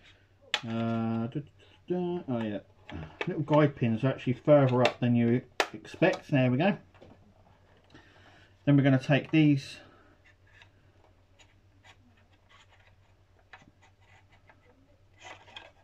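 Hard plastic parts click and rattle as they are handled.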